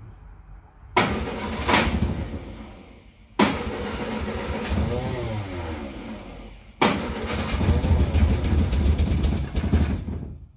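A car engine revs suddenly several times.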